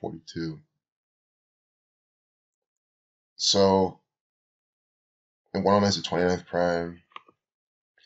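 A young man speaks calmly into a nearby microphone, in short bursts with pauses.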